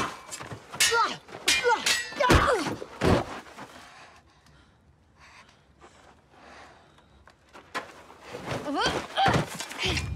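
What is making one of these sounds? A body thuds onto the ground.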